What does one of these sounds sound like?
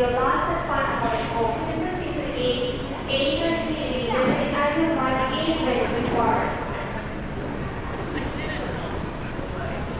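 People murmur and talk in a large echoing hall.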